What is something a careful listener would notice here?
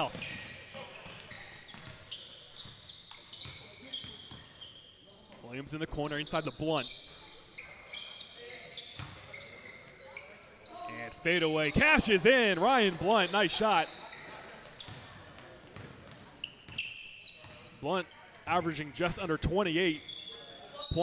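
Sneakers squeak sharply on a hard court floor, in a large echoing hall.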